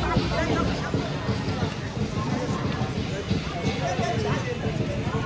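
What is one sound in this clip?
A large crowd chatters and cheers in the distance outdoors.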